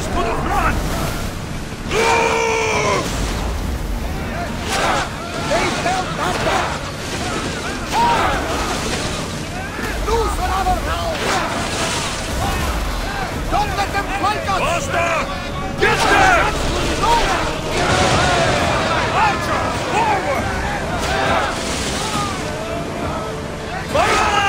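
Waves crash and rush against a ship's hull.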